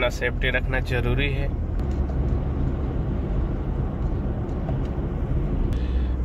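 A car engine hums steadily as the car drives on a road.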